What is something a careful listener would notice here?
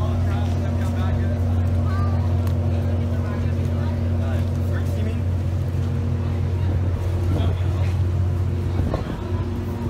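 A ship's engine hums steadily nearby.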